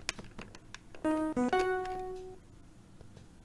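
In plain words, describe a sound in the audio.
Retro video game bleeps and jingles play.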